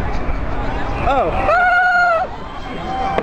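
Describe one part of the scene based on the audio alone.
Fireworks whistle shrilly.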